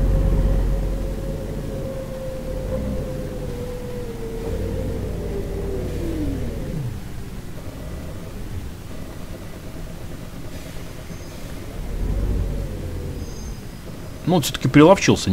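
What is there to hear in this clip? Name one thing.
A bus engine hums and winds down as the bus slows.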